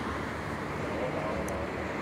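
Traffic passes on a nearby road.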